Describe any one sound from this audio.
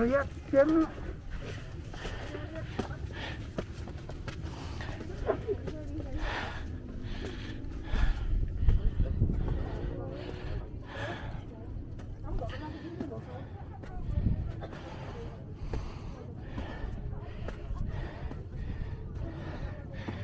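Footsteps tread steadily on stone steps.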